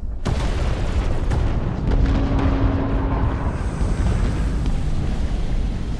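Large explosions boom.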